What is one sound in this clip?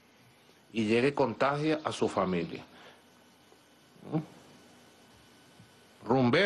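A middle-aged man speaks with emphasis into a close microphone, pausing between phrases.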